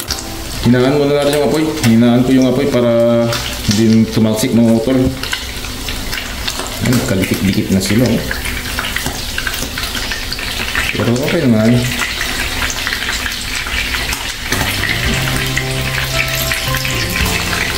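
Fish sizzles and spatters as it fries in hot oil.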